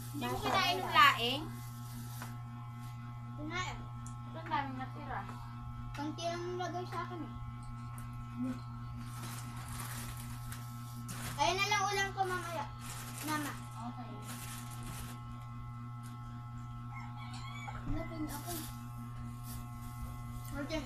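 Young children talk and laugh with animation close by.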